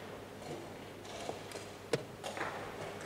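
A chess piece is set down on a wooden board with a soft knock.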